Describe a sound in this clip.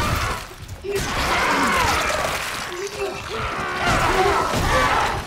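A monster shrieks and screeches.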